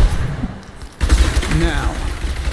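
Fire bursts whoosh and crackle.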